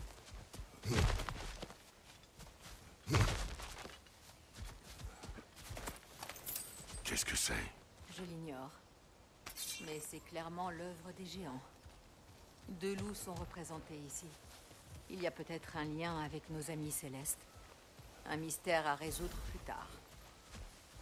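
Heavy footsteps thud on grass and earth.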